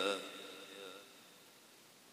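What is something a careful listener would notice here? A man chants in a drawn-out voice through a microphone.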